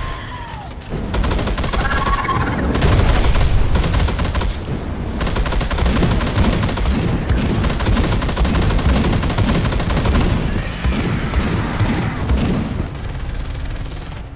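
A heavy gun fires rapid shots.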